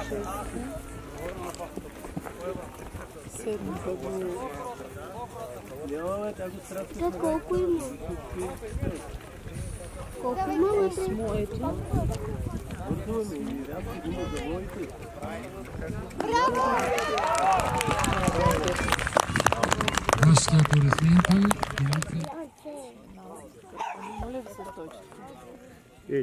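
A horse canters on grass with soft thudding hoofbeats.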